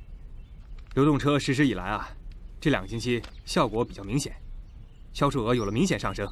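A man talks calmly outdoors.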